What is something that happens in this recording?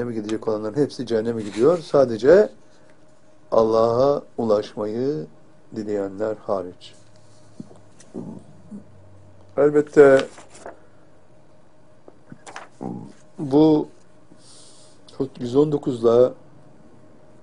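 An elderly man speaks calmly and clearly into a close microphone, in short phrases with pauses.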